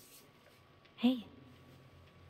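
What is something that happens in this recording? A young woman gasps sharply nearby.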